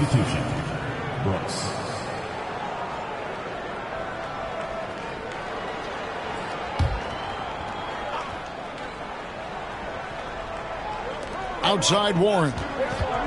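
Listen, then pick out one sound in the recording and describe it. A large crowd murmurs steadily in an arena.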